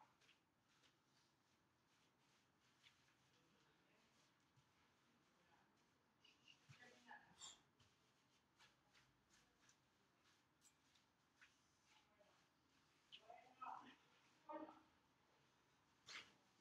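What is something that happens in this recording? Feet thump and shuffle on the ground.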